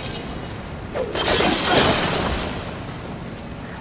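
Clay pots smash and shatter into pieces.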